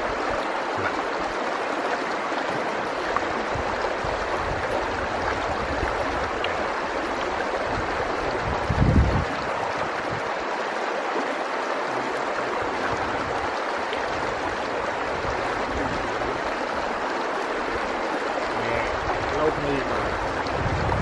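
Young men talk casually nearby.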